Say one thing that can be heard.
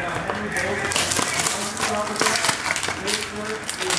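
Plastic wrap crinkles and tears.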